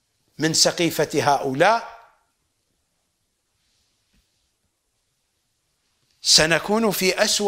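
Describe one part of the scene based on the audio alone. An elderly man speaks calmly and clearly into a close microphone, pausing between phrases.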